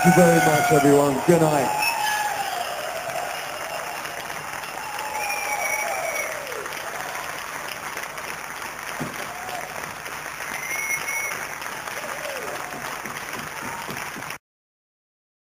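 A band plays blues music with horns and guitar.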